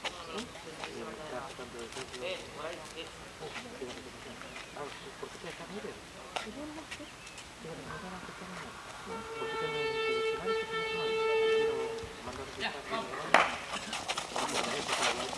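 Sneakers scuff on pavement as players run.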